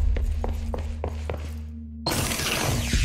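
Footsteps tread on a carpeted floor.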